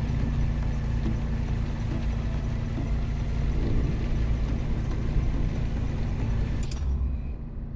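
A sports car engine idles with a low, steady rumble.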